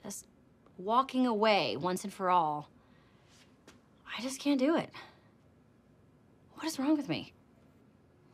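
A woman speaks with animation, close by.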